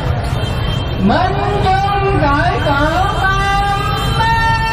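A man chants in a singing voice over a loudspeaker.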